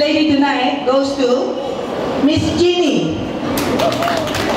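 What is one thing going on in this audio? A man speaks out loud to a group nearby.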